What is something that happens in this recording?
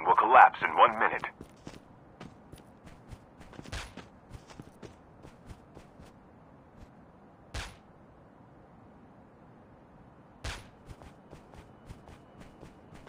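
Footsteps tread steadily over grass.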